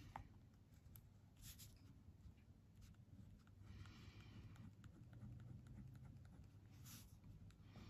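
A pencil scratches lightly on paper.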